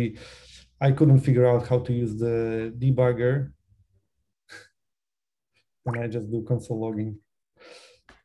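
A young man speaks calmly and close to a microphone, pausing between phrases.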